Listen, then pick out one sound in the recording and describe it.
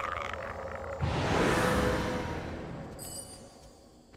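A magical spell bursts with a loud shimmering whoosh.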